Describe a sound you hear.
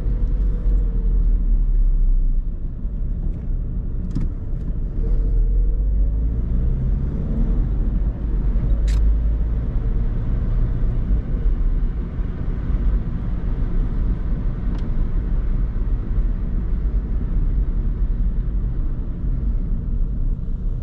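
Tyres roll and hiss on a wet road.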